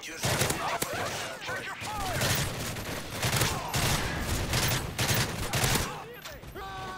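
Rapid bursts of automatic gunfire ring out close by.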